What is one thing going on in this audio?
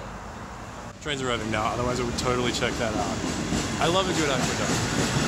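A young man talks with animation, close to the microphone.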